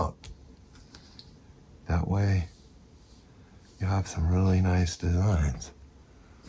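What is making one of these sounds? A plastic sheet slides and rustles over paper.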